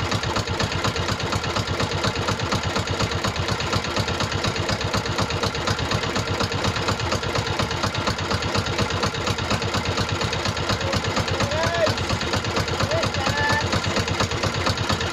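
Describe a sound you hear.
A boat engine chugs loudly and steadily.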